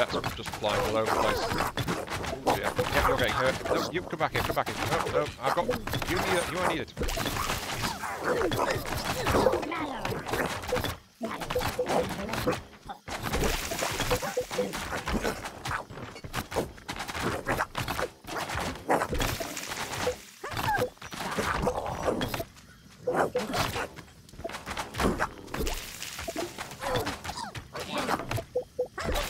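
Magic spells zap and crackle.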